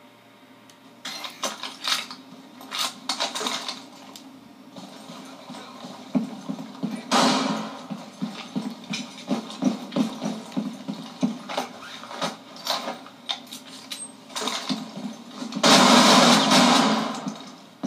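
Shotguns fire in loud blasts from a video game over a television speaker.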